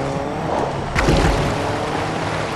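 Water splashes loudly as a car drives into it.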